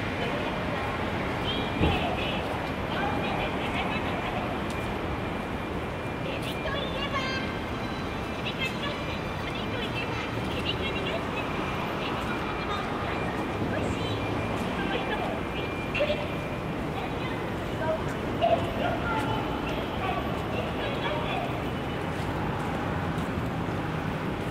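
Steady city traffic hums outdoors.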